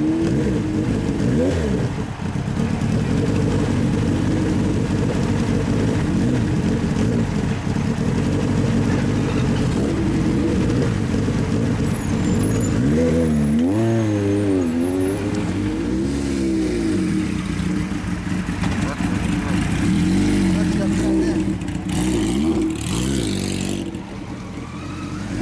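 A motorcycle engine idles with a low, steady rumble close by.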